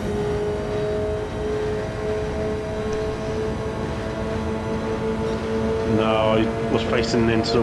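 Tyres rumble over the track.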